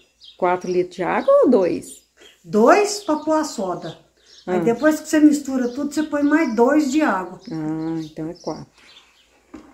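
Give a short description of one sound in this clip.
An elderly woman talks calmly and close by.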